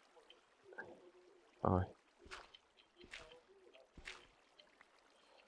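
Water splashes and swishes in short bursts.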